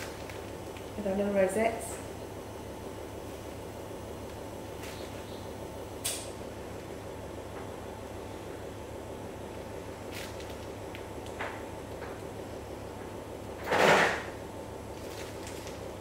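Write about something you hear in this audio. Icing squelches from a piping bag.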